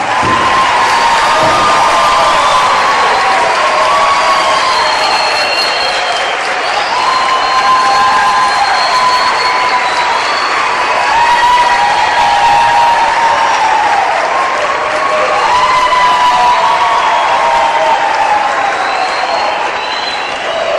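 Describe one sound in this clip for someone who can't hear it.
A large children's choir sings loudly in an echoing hall.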